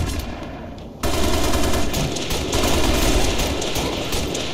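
A rifle fires loud booming shots in a large echoing hall.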